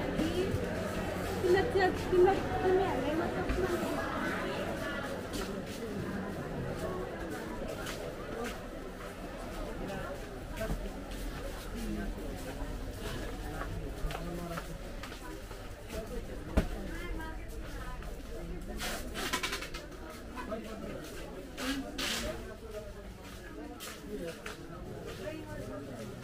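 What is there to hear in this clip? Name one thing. Footsteps shuffle along a hard floor.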